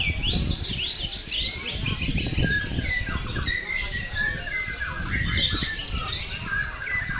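A songbird sings loud, rapid whistling phrases close by.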